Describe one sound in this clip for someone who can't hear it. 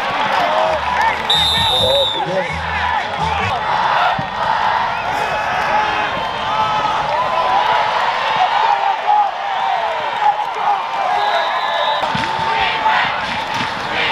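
A large crowd cheers and shouts in an open stadium.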